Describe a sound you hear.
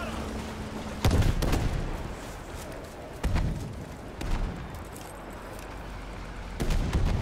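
Explosions boom nearby with deep rumbling.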